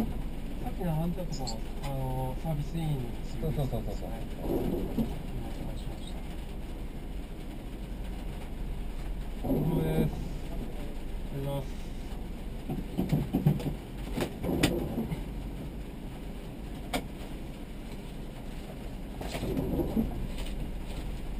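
A man speaks through a helmet intercom in short bursts.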